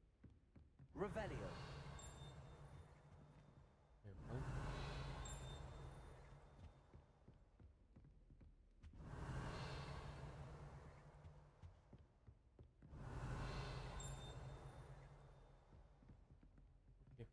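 A magic spell bursts with a loud whoosh and a long echoing fade, again and again.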